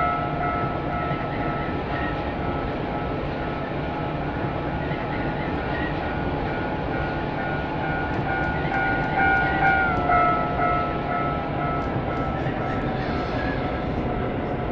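Train wheels rumble and clatter along the rails.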